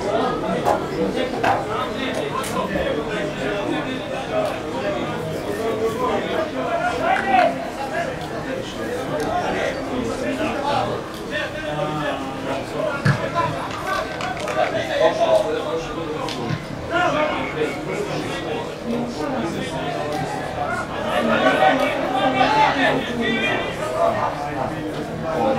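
Footballers call out to each other across an open pitch outdoors.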